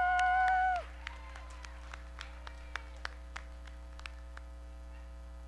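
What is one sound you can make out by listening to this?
A few people in an audience clap sparsely in a large hall.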